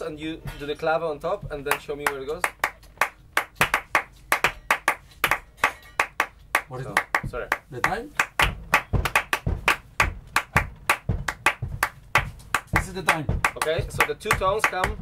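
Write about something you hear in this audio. A man claps his hands in a quick rhythm.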